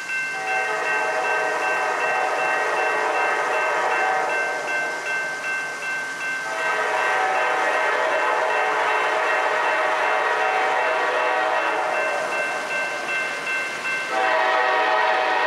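A train horn blows in long, loud blasts.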